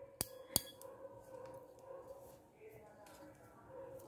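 A metal crimping tool is set down onto a wooden board.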